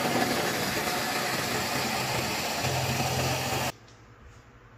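A drill press bores into wood.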